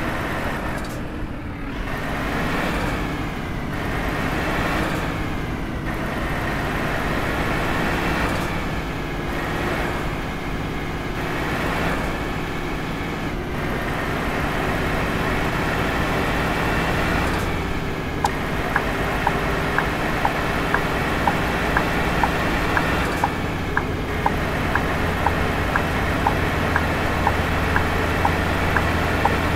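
A truck engine rumbles steadily as it drives and picks up speed.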